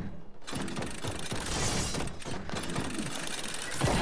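Footsteps patter quickly on a metal floor.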